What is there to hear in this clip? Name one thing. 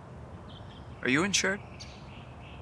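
A man speaks a few loud words close by.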